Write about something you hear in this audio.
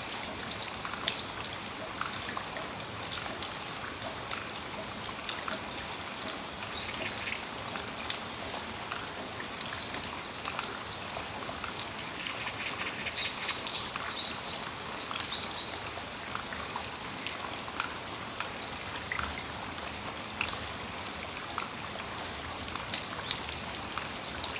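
Raindrops patter and drip onto a metal awning.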